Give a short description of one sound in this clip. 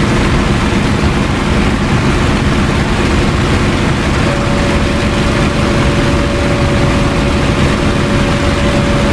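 A propeller aircraft engine roars loudly and steadily.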